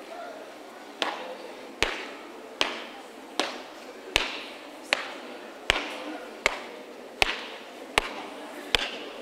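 Shoes stamp on pavement in a steady marching beat.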